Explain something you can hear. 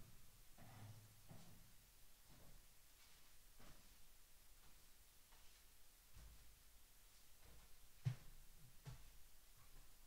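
Footsteps move away across the floor.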